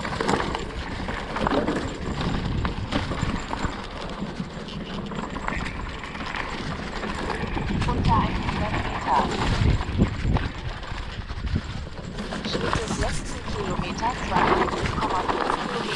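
A hardtail mountain bike rattles over roots and bumps.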